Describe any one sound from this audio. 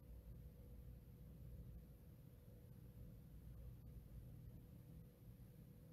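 Footsteps walk across a floor indoors.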